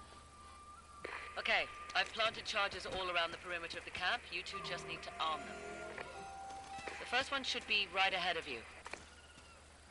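A man speaks calmly through a radio.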